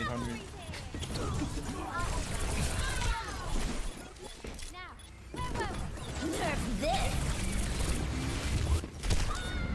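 Rapid pistol shots fire in quick bursts.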